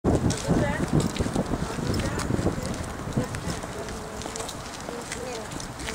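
Footsteps shuffle along a paved path.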